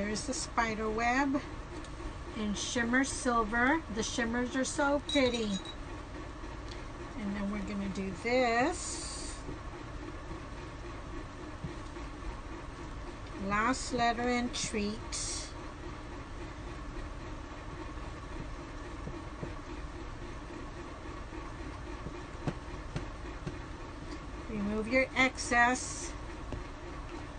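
An older woman speaks calmly and close by, in short bursts.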